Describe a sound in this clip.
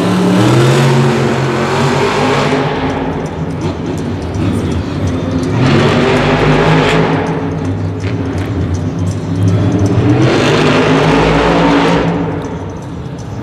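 A monster truck engine roars loudly, revving up and down.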